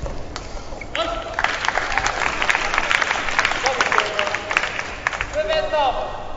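A crowd cheers in a large indoor hall.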